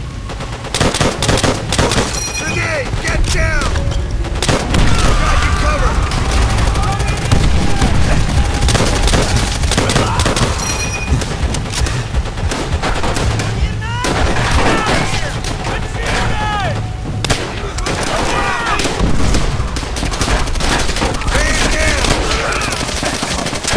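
Rifle shots crack loudly, one after another.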